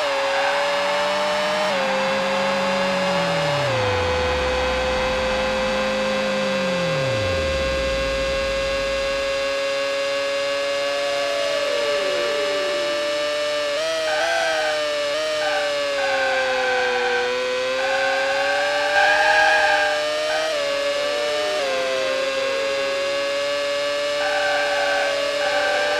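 A racing car engine whines loudly at high revs, its pitch dropping at each gear change.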